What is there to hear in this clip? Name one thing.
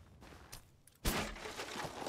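A blade swishes sharply through the air.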